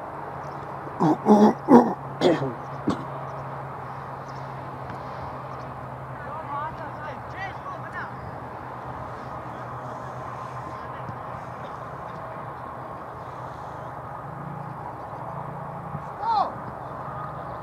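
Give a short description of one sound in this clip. Distant players shout across an open outdoor field.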